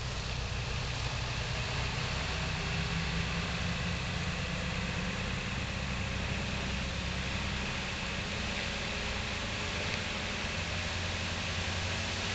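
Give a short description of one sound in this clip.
A truck engine rumbles steadily as the truck drives slowly away.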